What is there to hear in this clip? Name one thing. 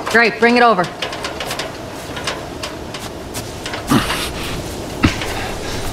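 A metal ladder clatters as it is lifted and set against a wall.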